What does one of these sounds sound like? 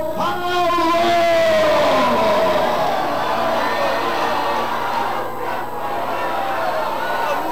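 A crowd of people cries out and calls together.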